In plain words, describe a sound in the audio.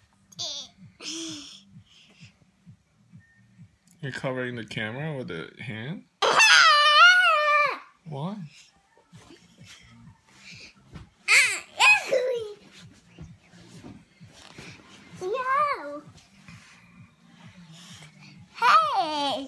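A young boy squeals and babbles playfully close by.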